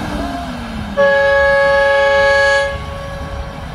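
A truck horn blares loudly for a moment.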